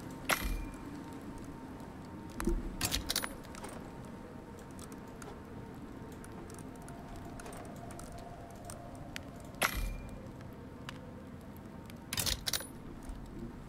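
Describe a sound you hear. Short game menu clicks sound now and then.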